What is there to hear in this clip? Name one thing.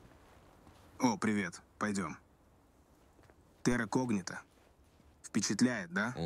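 A young man speaks casually and close by.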